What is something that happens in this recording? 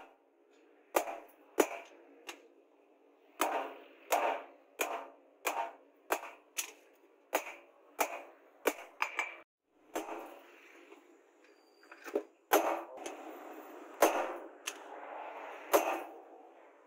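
A hammer strikes hot metal on an anvil with sharp ringing clangs.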